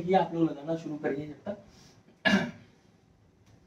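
A man speaks clearly and with animation into a close microphone.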